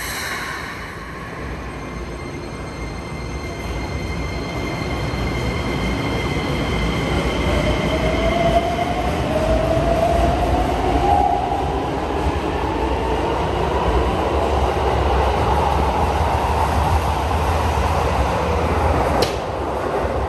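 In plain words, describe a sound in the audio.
An electric train pulls away with a rising motor whine and rumble, in an echoing underground space.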